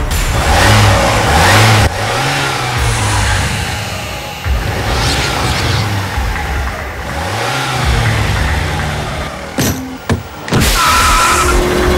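A vehicle engine rumbles and revs.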